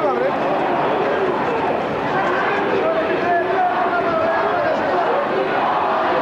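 A crowd of men and women chants together outdoors.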